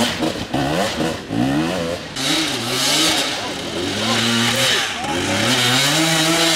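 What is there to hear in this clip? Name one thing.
A dirt bike engine revs up and down hard, close by.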